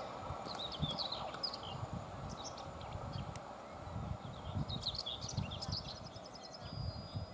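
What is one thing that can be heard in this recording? A train rumbles along the tracks and slowly moves away.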